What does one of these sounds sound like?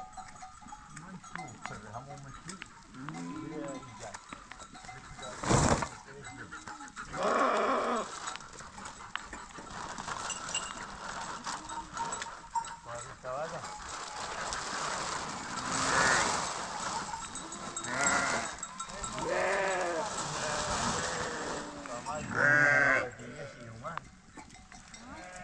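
Sheep bleat nearby and in the distance.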